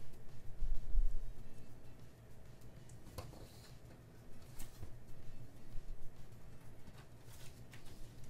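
Scissors snip through paper with small crisp cuts.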